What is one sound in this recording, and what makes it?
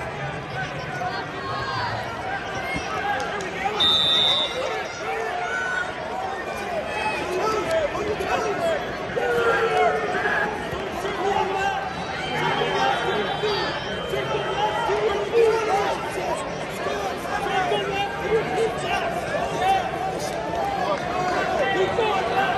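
A large crowd chatters and shouts in a big echoing arena.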